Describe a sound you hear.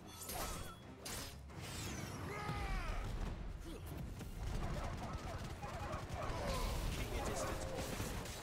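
Fiery blasts burst and roar.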